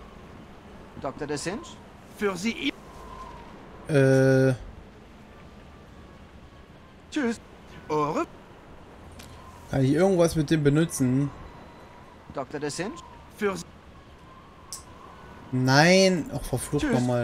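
A young man talks calmly into a microphone, close by.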